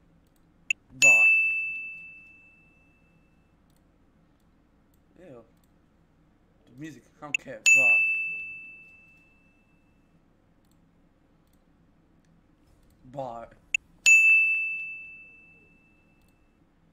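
A bright chime rings out and fades, again and again.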